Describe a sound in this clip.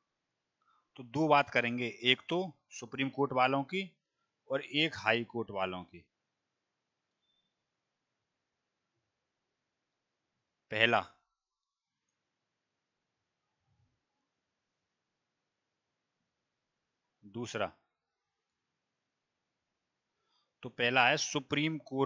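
A man speaks calmly into a headset microphone, in short bursts with pauses.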